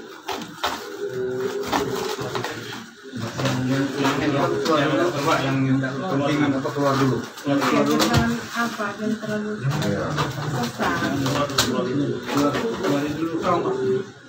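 A man wails and sobs loudly close by.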